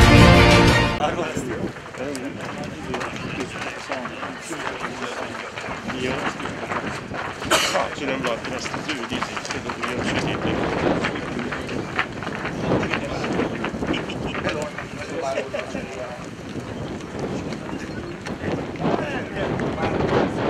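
Footsteps shuffle on a path outdoors as a group walks past.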